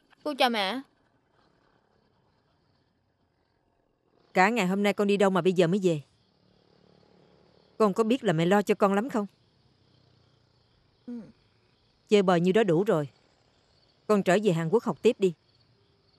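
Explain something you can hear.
A woman speaks tensely, close by, in short bursts.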